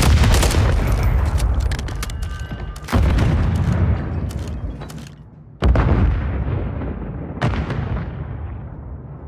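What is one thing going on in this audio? Gunshots boom and echo loudly.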